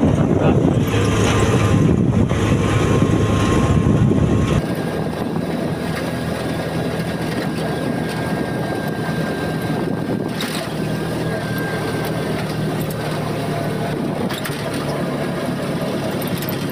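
A small engine hums steadily while moving along a road.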